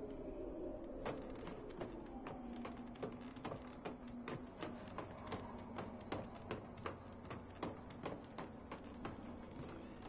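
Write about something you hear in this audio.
Footsteps knock rapidly on wooden ladder rungs during a climb.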